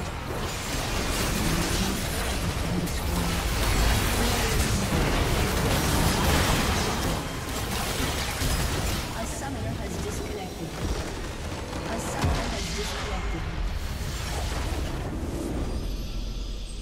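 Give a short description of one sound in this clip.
Magic blasts, clashes and explosions crackle loudly in a fast battle.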